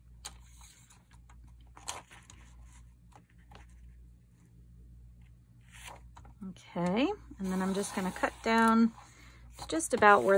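A paper trimmer blade slides and slices through paper.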